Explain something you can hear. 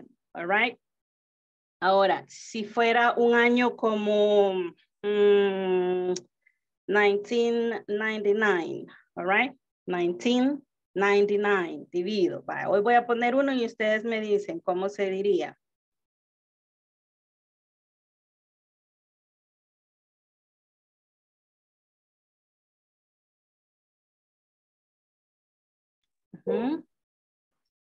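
A woman speaks calmly over an online call, as if teaching.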